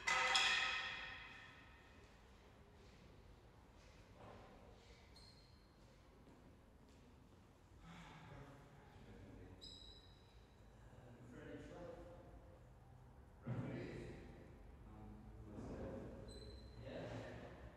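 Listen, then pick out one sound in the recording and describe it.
A ball is struck with a racket in a large echoing hall.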